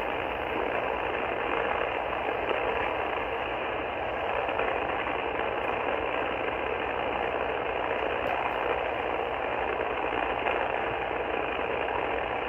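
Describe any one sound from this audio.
A radio receiver hisses with steady static through a small loudspeaker.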